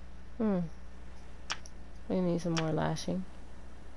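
Menu clicks tick quickly.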